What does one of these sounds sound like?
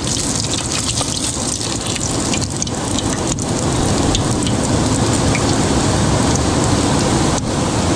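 A piece of fish sizzles and crackles in hot oil.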